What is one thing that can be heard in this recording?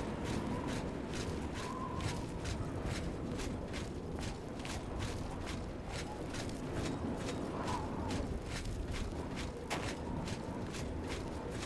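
Footsteps crunch steadily on rough ground.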